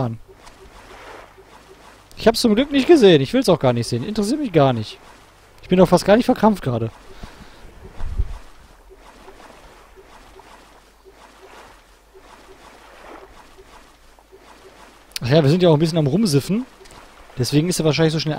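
A paddle splashes softly through calm water.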